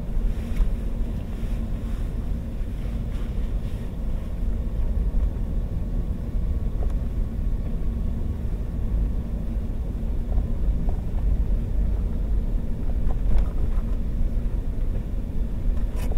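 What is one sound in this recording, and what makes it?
A windscreen wiper sweeps across the glass.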